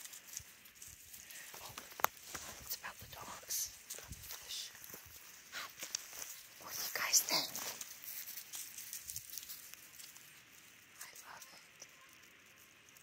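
Dogs' paws rustle and crunch through dry leaves and twigs.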